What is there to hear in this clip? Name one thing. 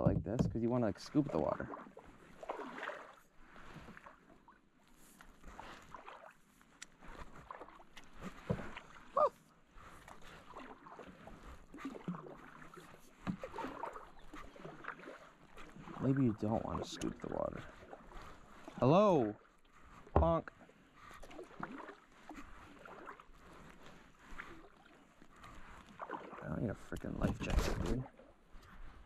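A kayak paddle dips and splashes in the water with each stroke.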